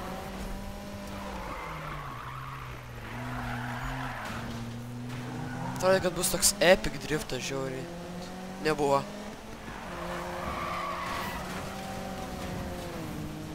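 A car engine roars steadily, rising and falling in pitch.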